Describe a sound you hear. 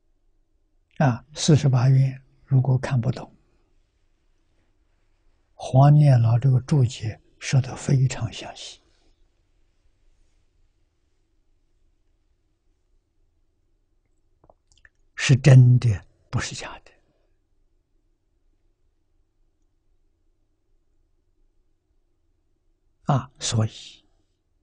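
An elderly man speaks calmly into a close microphone, in short phrases with long pauses.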